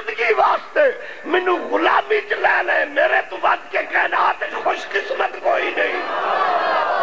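A man speaks passionately and loudly through a microphone.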